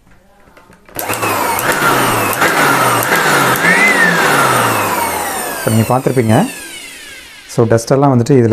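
An electric blower whirs loudly, then winds down.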